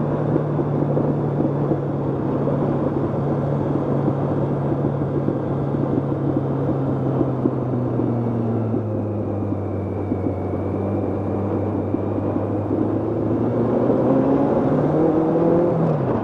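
A motorcycle engine hums steadily and rises in pitch near the end.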